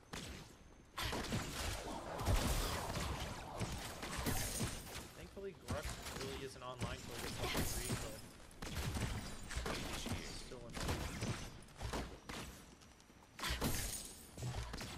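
Game combat sounds of blasts and impacts burst out repeatedly.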